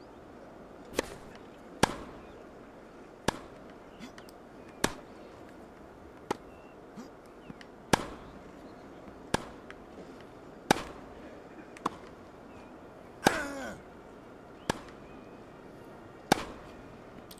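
A tennis ball is struck back and forth with sharp pops of a racket.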